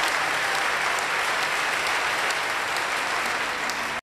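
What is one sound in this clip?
A saxophone plays.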